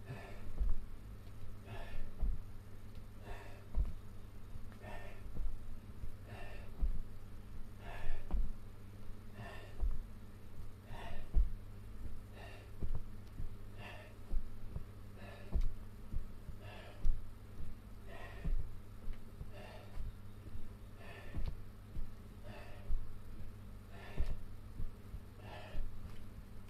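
Feet thump on a padded floor in a steady rhythm.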